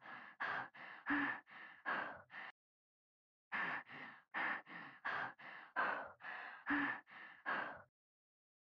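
A young woman breathes in short, shaky gasps close by.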